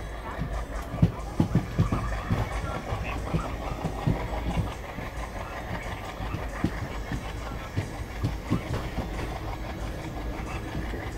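Wind rushes past the moving train.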